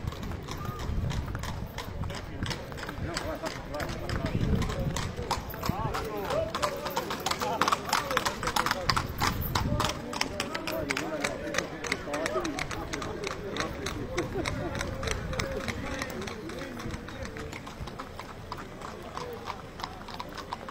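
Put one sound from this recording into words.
Horse hooves clop on a paved road.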